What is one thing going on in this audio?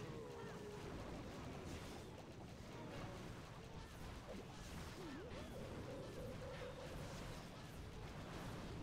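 Cartoon battle effects crackle and thump with small explosions.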